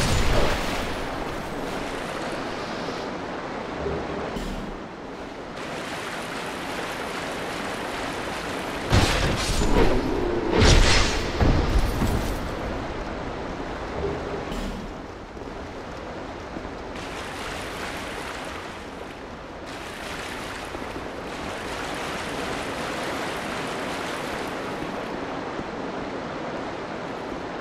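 Footsteps with clinking armour tread on stone.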